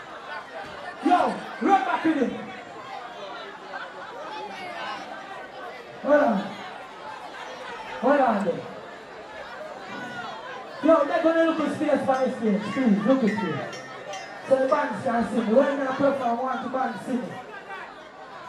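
A young man shouts and chants into a microphone through loud outdoor speakers.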